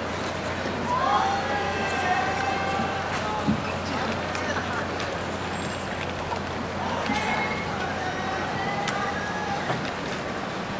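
Young performers sing together on an outdoor stage.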